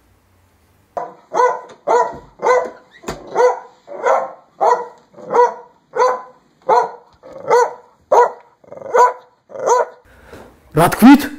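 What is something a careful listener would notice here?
A dog barks repeatedly in a steady rhythm.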